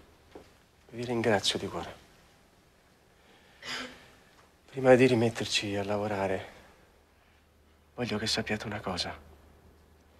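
A man speaks nearby in a calm, measured voice.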